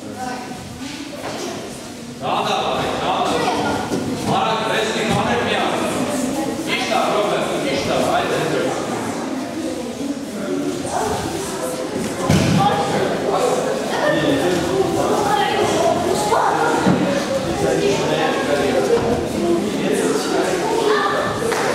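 Bodies thud onto soft mats.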